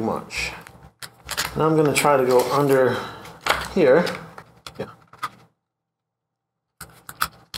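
Plastic clicks and scrapes as gloved hands handle small parts.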